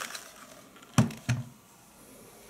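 A plastic hand mixer is set down on a table with a knock.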